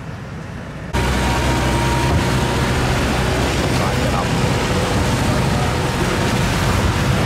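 A small boat motor drones over the water.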